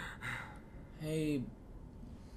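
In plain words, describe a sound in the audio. A dog gives a short whine.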